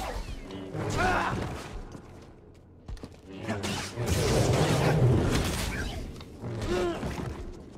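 Energy blades clash with sharp crackling bursts.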